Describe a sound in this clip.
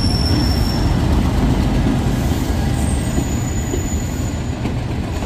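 A diesel locomotive rumbles loudly as it passes close by.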